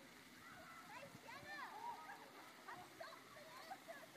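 A child splashes through shallow water.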